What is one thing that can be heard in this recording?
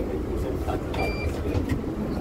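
A card reader beeps once.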